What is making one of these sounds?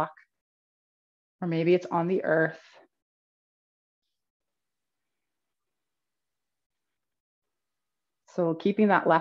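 A woman speaks calmly and clearly into a close microphone, with pauses.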